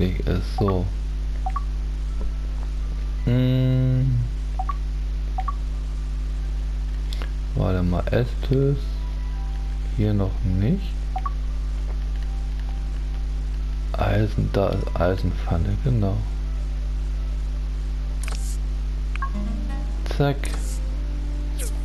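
Soft electronic blips sound as a game menu is scrolled through.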